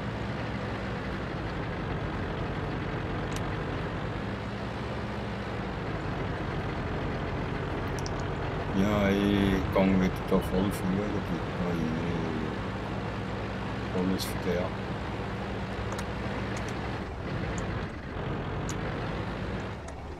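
A tank engine rumbles steadily as a tank drives.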